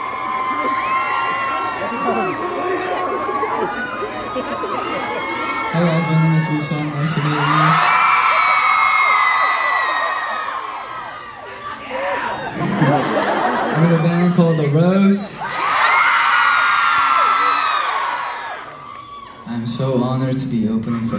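A young man raps loudly into a microphone in a large echoing hall.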